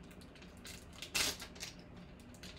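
A foil wrapper tears open.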